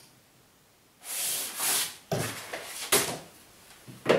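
Wallpaper rustles as a man folds it.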